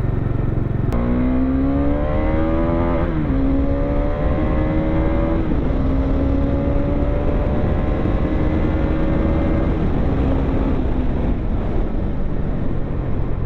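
A motorcycle engine revs up, rising in pitch through the gears.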